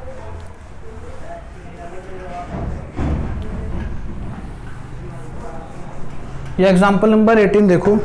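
An eraser rubs softly across a whiteboard.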